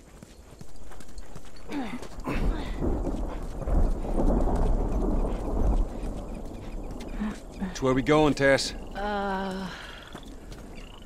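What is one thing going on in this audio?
Footsteps crunch slowly on gravel and rubble.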